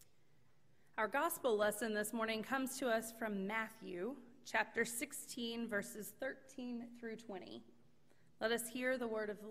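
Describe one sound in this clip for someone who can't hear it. A woman speaks calmly into a microphone in a room with a slight echo.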